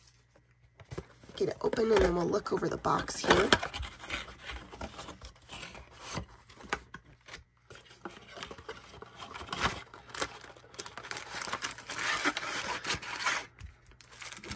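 A cardboard box is torn and pulled open.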